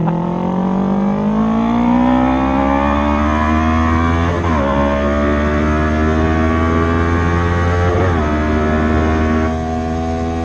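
A motorcycle engine roars close by, revving up and shifting gears as it speeds along.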